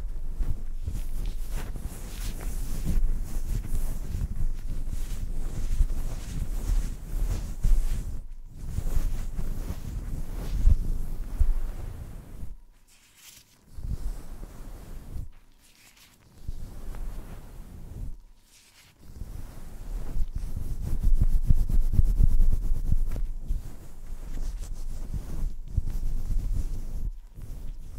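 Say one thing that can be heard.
A young woman whispers softly, very close to the microphone.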